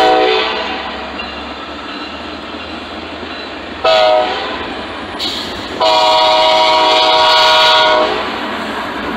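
A passenger train rumbles past on the tracks.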